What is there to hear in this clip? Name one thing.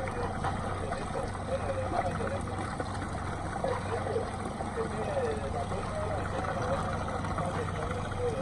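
Boat engines hum steadily.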